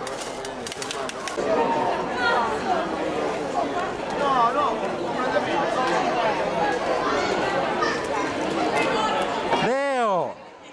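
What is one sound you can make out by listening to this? A crowd of men and women chatter loudly all around outdoors.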